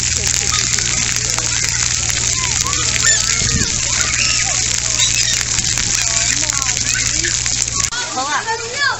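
Water sprays and hisses steadily from a fountain jet.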